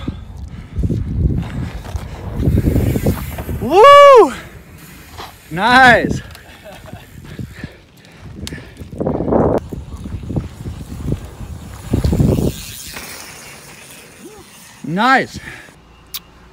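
Bicycle tyres roll and crunch over a dirt trail.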